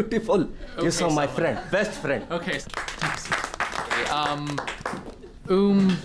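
A small group laughs and claps.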